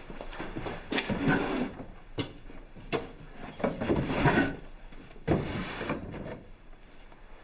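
Wooden drawers slide and knock as they are opened and shut.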